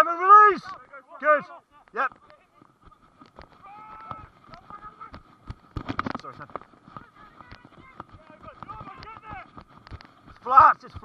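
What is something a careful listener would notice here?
A man shouts loudly nearby outdoors.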